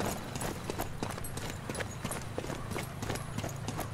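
Footsteps thud up stone steps.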